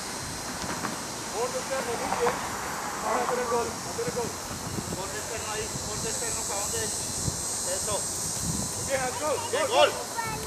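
A soccer ball thumps as children kick it on grass.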